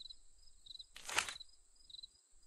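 A short soft whoosh sounds once.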